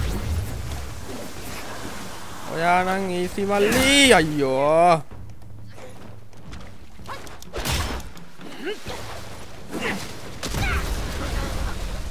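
Water splashes as fighters move through it.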